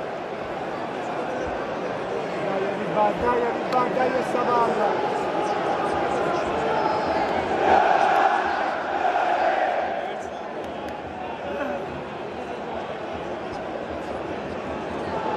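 A large stadium crowd roars and chants loudly outdoors.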